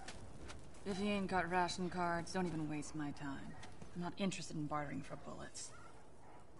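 A woman speaks curtly and dismissively.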